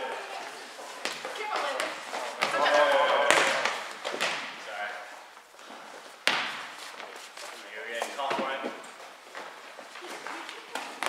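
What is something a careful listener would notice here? Young women call out and talk during play, echoing in a large hall.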